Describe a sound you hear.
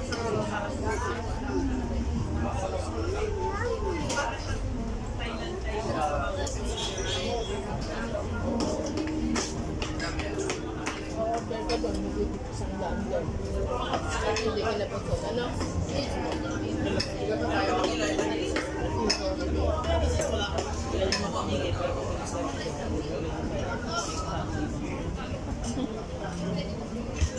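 A crowd chatters outdoors all around.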